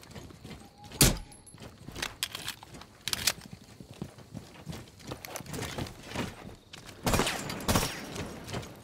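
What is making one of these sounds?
Gunshots crack sharply now and then.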